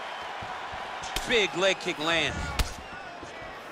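A kick lands on a body with a heavy thud.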